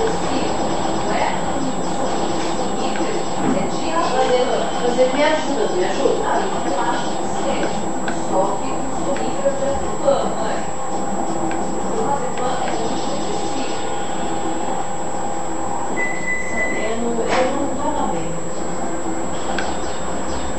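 Video game music plays with chimes and jingles through a small television speaker.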